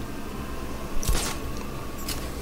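A grappling hook fires with a sharp whoosh.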